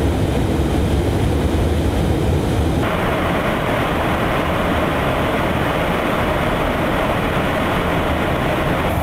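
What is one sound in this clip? A jet aircraft roars in flight.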